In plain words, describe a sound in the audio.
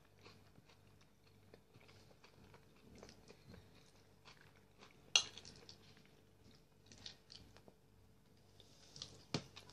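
A man chews food noisily close by.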